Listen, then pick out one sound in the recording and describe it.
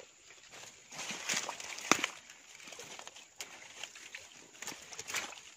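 Footsteps crunch on dry leaves close by.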